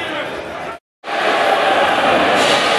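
A large crowd murmurs and calls out in an echoing hall.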